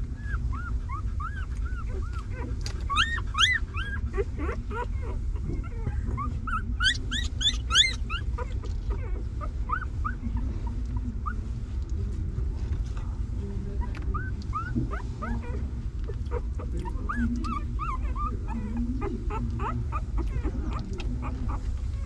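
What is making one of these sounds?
Newborn puppies squeak and whimper in high, thin cries.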